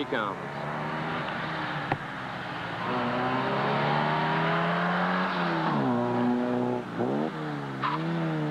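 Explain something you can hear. A car engine revs and strains.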